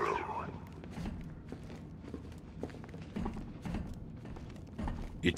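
Heavy boots thud slowly on a hard floor.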